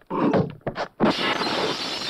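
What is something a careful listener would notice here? Glass shatters as a man crashes through a window.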